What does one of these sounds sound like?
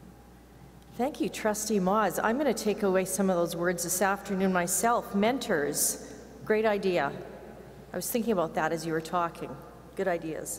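A woman speaks calmly into a microphone, heard through loudspeakers in a large hall.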